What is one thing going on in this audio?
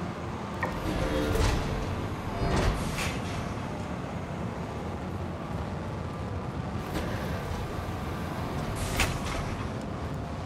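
Elevator doors slide open and shut with a mechanical whoosh.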